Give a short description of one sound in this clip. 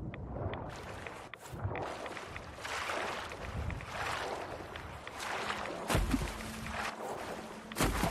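Water splashes and sloshes as someone swims.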